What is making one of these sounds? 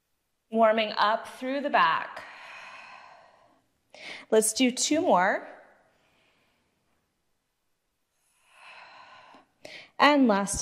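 A young woman speaks calmly, giving instructions.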